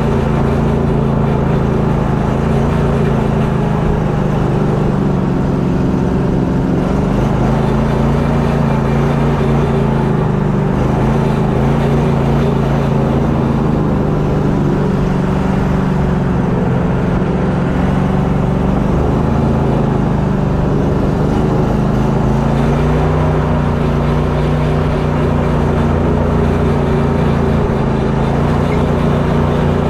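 A boat's outboard motor drones loudly and steadily up close.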